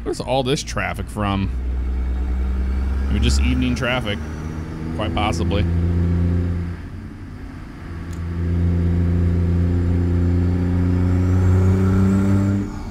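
A truck engine drones steadily, its pitch dipping briefly before it pulls again.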